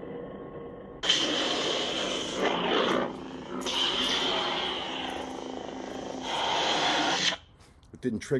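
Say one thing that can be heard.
A toy light saber hums loudly and whooshes as it swings.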